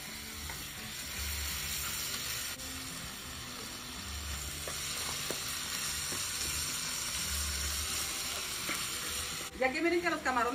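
Shrimp sizzle loudly in a hot pan.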